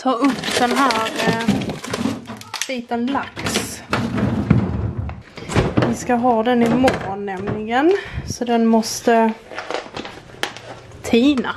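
A plastic bag crinkles as it is lifted.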